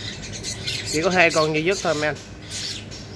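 A small bird squawks sharply a few times close by.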